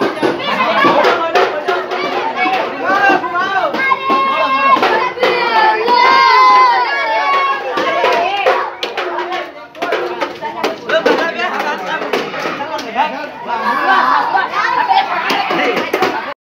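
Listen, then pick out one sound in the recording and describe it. A crowd of boys and young men chants and shouts close by.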